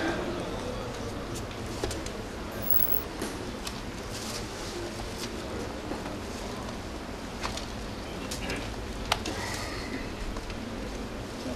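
An elderly man speaks slowly into a microphone, heard over a noisy, humming recording.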